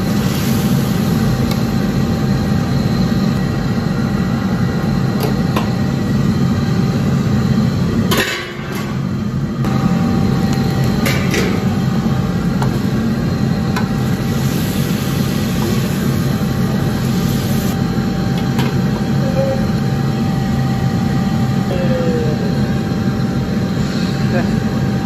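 Meat sizzles in a hot wok.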